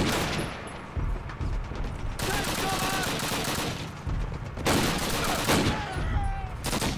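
Rifle shots bang loudly.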